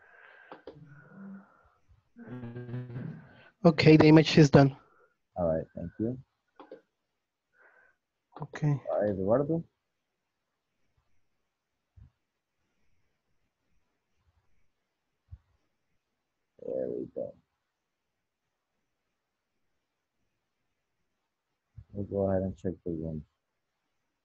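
A young man speaks calmly over an online call, in bursts with pauses.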